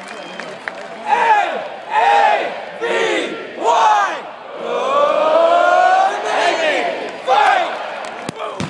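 Crowd members nearby shout together in loud bursts.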